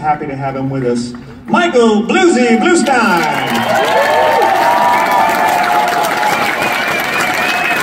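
A band plays acoustic guitars and keyboard live in a large hall.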